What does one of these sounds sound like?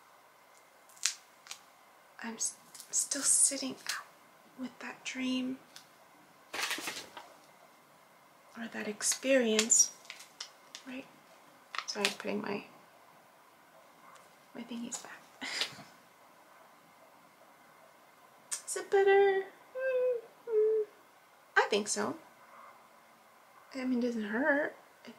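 A young woman talks close up in short bursts, with pauses.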